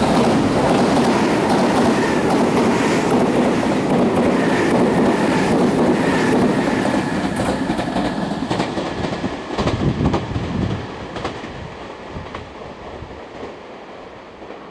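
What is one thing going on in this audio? A train rushes past close by with a loud roar that slowly fades into the distance.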